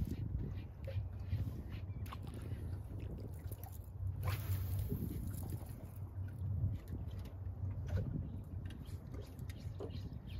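Wind buffets outdoors on open water.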